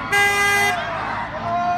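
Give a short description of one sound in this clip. A truck horn honks.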